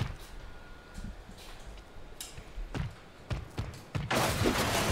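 Heavy metal footsteps thud on pavement.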